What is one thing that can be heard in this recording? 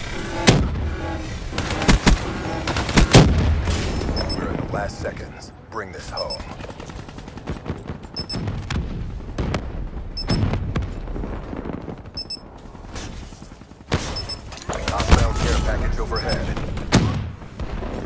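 Gunfire bursts out in sharp rapid shots.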